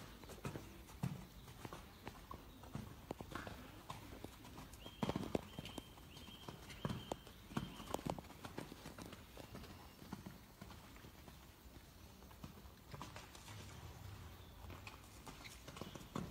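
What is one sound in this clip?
Horses' hooves thud on soft sand.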